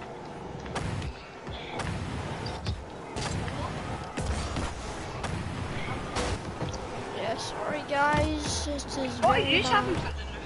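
A ball is struck with sharp thumps.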